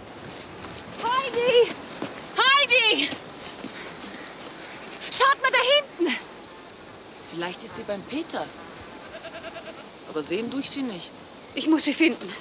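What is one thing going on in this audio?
A young woman shouts out loudly outdoors.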